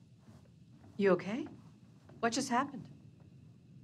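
A woman asks a worried question.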